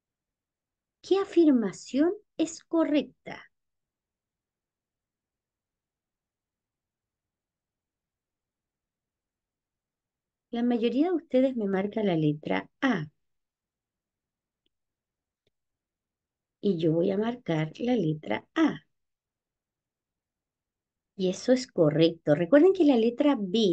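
A woman speaks calmly through an online call microphone, in short bursts with pauses.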